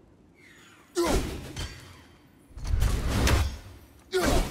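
A man grunts loudly with effort.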